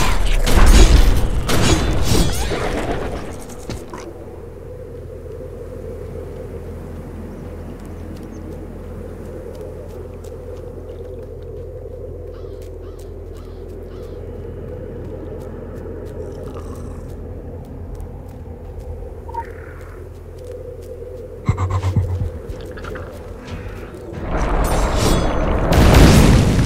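Magic blasts whoosh and crash loudly.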